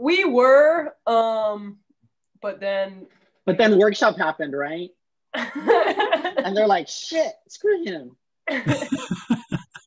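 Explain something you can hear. A woman talks and laughs over an online call.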